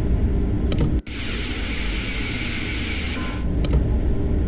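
A high-speed train rushes past with a loud hissing roar.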